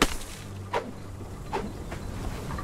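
An axe chops into dead wood with sharp thuds.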